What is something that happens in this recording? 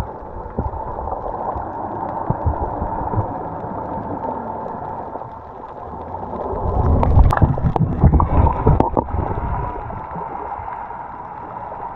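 Water rushes and bubbles, heard from underwater.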